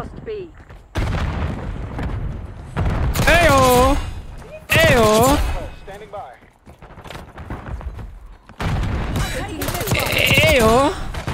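Rapid gunfire blasts in bursts.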